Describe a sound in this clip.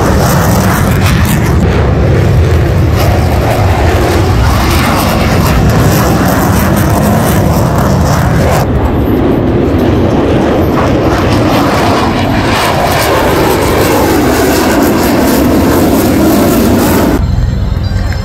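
A jet engine roars loudly overhead.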